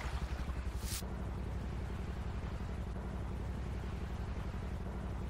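Water laps gently against a floating airliner.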